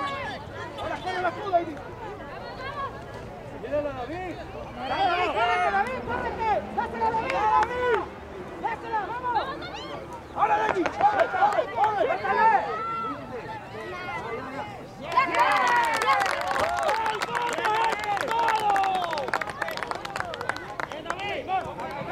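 Adult men and women shout and cheer excitedly from the sidelines outdoors.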